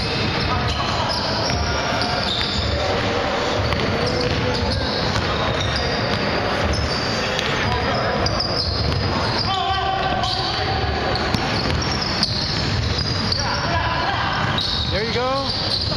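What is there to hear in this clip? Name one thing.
Men shout and call out across a large echoing gym.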